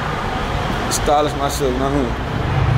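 A young man speaks close to the microphone in an echoing space.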